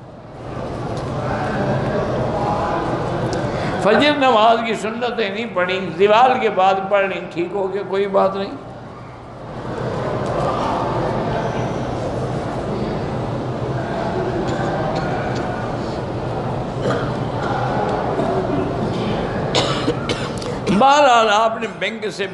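An elderly man speaks with animation through a microphone in an echoing hall.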